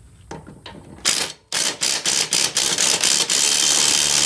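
A cordless impact drill rattles loudly as it drives a bolt.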